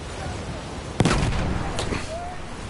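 A gunshot cracks loudly nearby.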